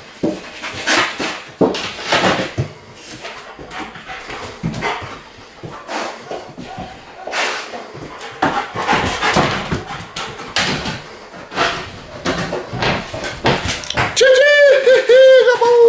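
A dog sniffs eagerly.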